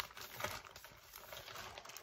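A sheet of paper rustles as it is pulled out.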